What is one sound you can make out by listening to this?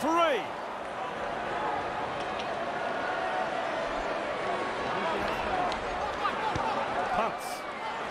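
A large crowd roars and whistles steadily in a stadium.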